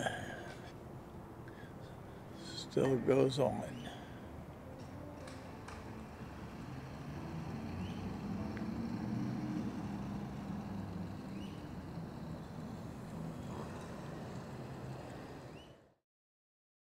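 Wind blows softly outdoors.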